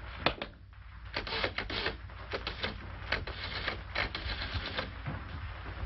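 A telephone receiver hook clicks rapidly.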